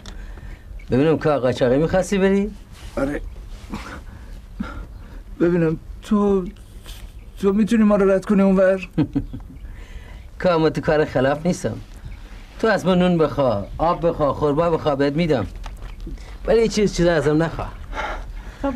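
A second middle-aged man answers calmly, close by.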